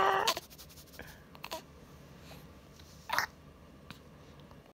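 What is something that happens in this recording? A baby sucks and smacks on its fingers.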